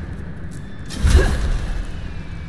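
A fiery blast bursts with a deep boom.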